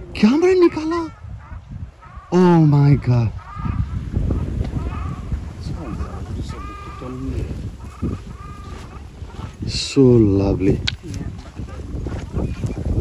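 Water birds call with loud honking cries nearby.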